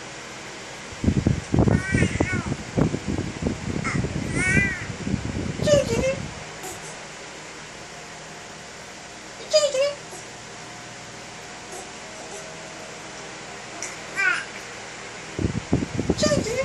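A man laughs softly up close.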